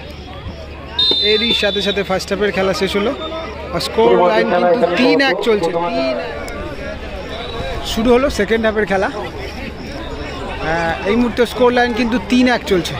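A large outdoor crowd of spectators cheers and shouts.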